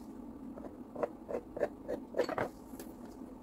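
A knife taps on a wooden board as it scores dough.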